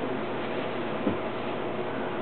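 A body thumps softly onto a carpeted floor.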